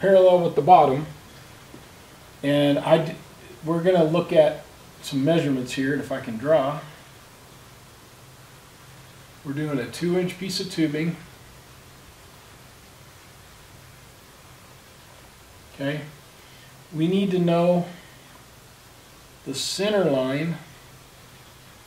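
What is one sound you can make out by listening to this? A middle-aged man speaks calmly and explains, close by.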